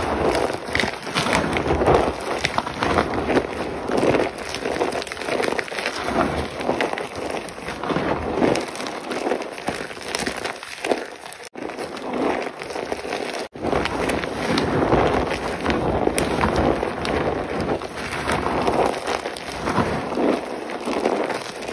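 Powder sifts and patters down between fingers.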